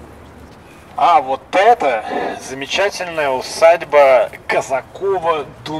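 A young man speaks loudly and with animation close by, outdoors.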